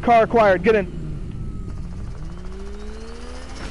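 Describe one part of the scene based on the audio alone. A car engine revs up.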